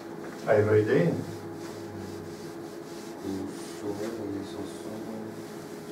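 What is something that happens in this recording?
A cloth rubs across a chalkboard, erasing it.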